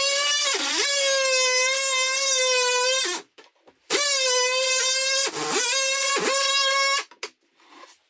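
A cordless drill whirs loudly in two long bursts, its pitch dipping briefly under load.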